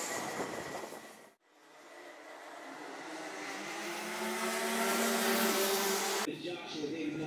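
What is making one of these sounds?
A kart engine buzzes loudly as a kart races past.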